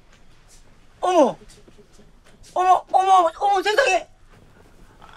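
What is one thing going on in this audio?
A woman cries out in distress close by.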